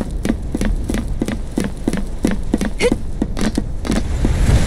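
Quick footsteps clank on a metal walkway.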